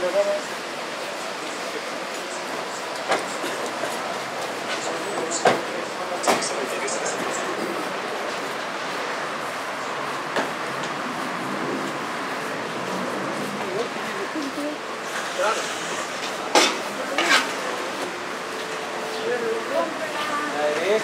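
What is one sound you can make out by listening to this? A steady hum of city traffic fills the air outdoors.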